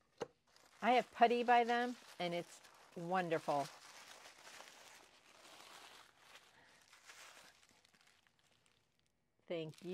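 Tissue paper crinkles and rustles as it is folded.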